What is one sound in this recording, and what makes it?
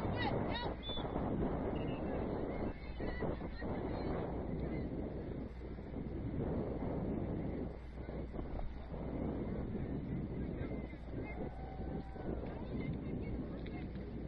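Wind rumbles across an open field outdoors.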